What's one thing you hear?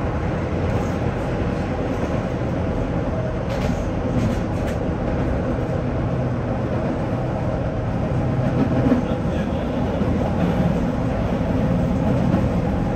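Train wheels clatter over the track joints.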